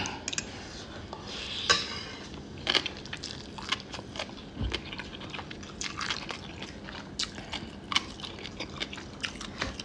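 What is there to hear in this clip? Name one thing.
A young man slurps and chews noodles.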